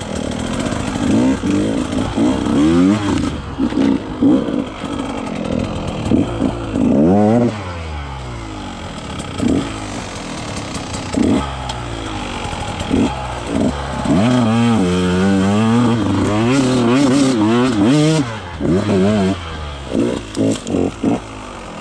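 Tyres crunch over dry leaves and gravel.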